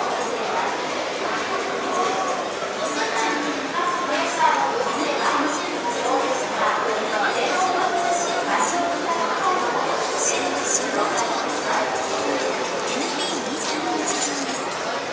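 A crowd of adults murmurs and chatters around the listener.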